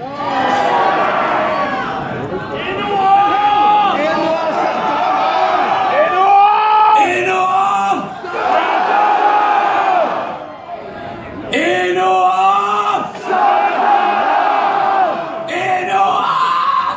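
A man sings into a microphone, heard through a loudspeaker system.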